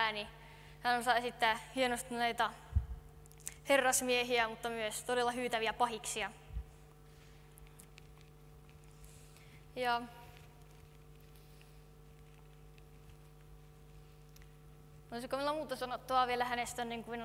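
A woman speaks through a microphone in a large echoing hall, with pauses.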